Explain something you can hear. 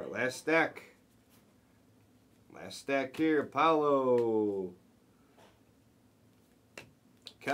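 Trading cards rustle as they are shuffled by hand.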